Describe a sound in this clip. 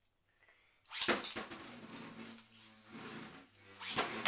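A spinning top is launched and whirs loudly.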